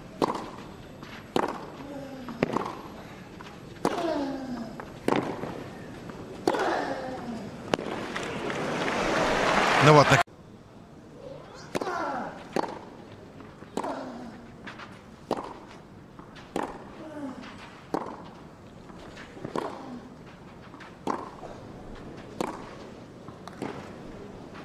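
Tennis rackets strike a ball with sharp pops, back and forth.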